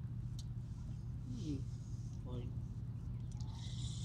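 A fishing reel clicks as it is wound.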